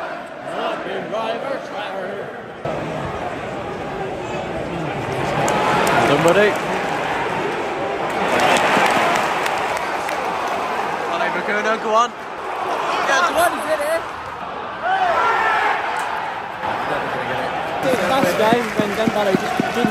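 A large stadium crowd roars and cheers, echoing under the roof.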